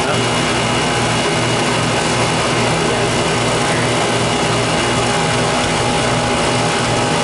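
A compressor unit hums and rattles loudly and steadily close by.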